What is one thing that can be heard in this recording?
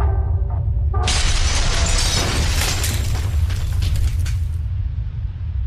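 A stone wall shatters and pieces crash down.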